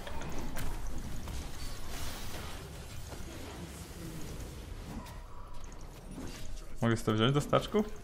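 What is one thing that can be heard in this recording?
Video game sound effects clash and whoosh.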